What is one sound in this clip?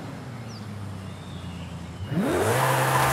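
A sports car engine idles with a low rumble.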